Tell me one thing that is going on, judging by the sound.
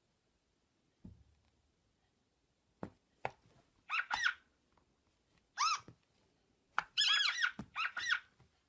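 A cat's paw taps on a tablet's glass.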